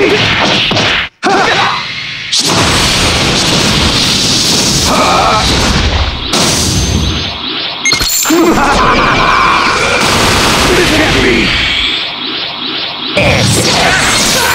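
Game punches and energy blasts crash and boom loudly.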